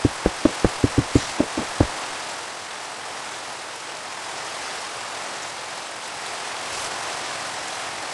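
Steady rain falls and patters.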